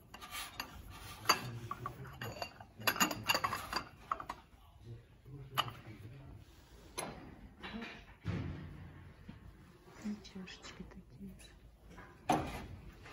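Ceramic pieces clink and knock against each other close by.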